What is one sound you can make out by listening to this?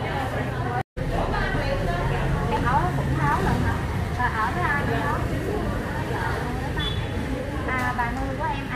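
A young woman speaks up close in a friendly way.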